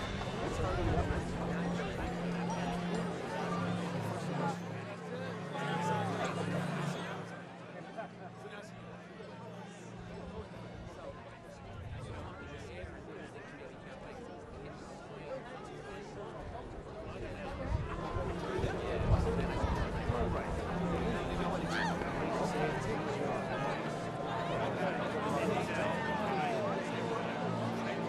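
Bagpipes drone and play a tune outdoors.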